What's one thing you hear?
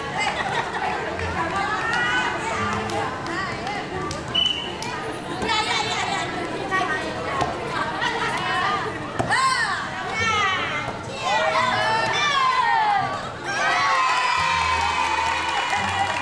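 A crowd of girls shouts and cheers outdoors.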